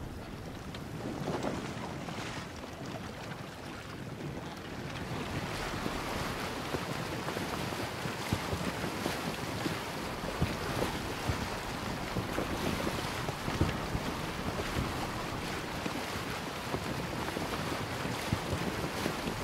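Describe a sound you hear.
Water splashes and rushes along the hull of a wooden sailing boat under way.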